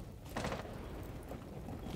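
Flames crackle nearby.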